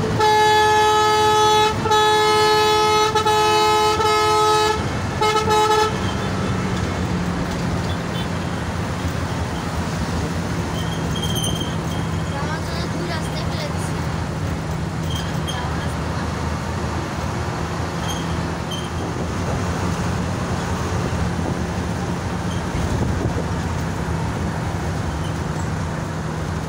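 A bus engine drones steadily.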